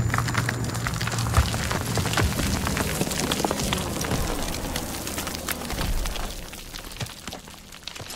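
Debris rains down and clatters on stones.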